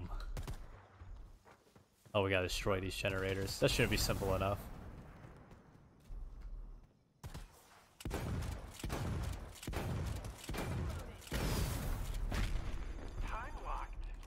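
Gunfire bursts and rattles in quick shots.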